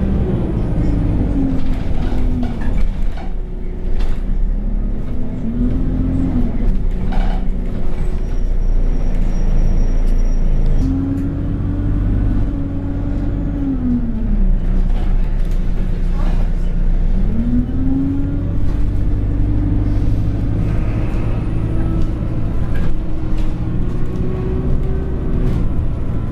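A bus engine rumbles and hums, rising and falling in pitch as the bus speeds up and slows down.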